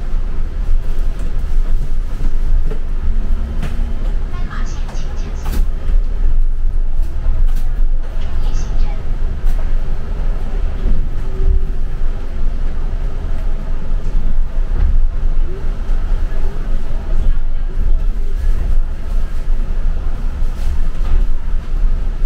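The bus body rattles and clatters over the road.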